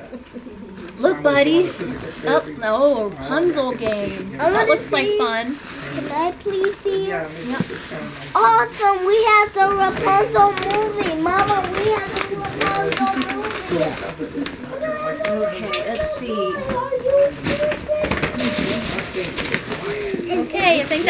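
Young children talk and squeal excitedly close by.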